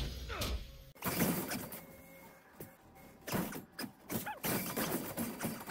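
Spell effects burst and whoosh in a fast battle.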